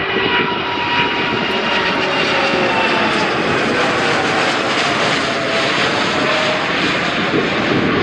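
A jet airliner roars loudly overhead as it climbs.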